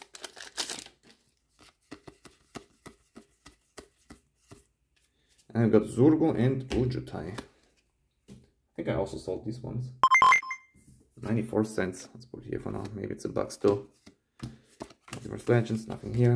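Playing cards rustle and click softly as they are handled.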